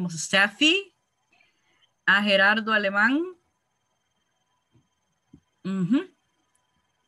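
A woman talks with animation over an online call.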